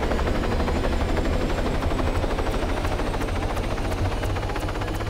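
A helicopter engine whines steadily.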